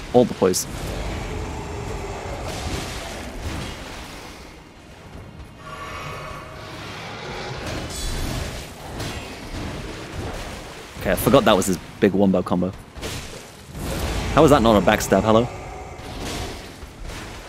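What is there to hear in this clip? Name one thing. Heavy blades swing and strike in a fight.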